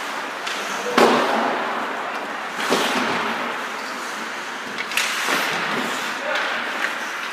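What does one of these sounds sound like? Hockey sticks clack sharply against a puck, echoing in a large rink.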